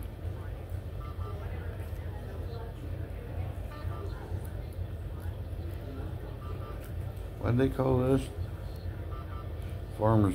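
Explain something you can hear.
A patient monitor beeps softly at a steady pace.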